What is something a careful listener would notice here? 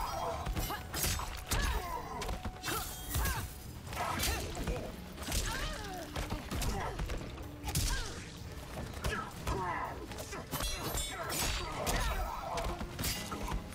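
Blades swish and slash through the air.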